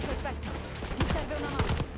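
Guns fire in rapid bursts close by.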